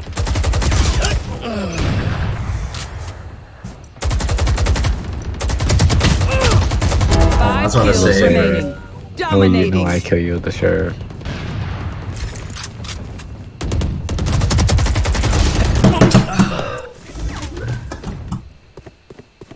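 Rapid gunshots crack from a game.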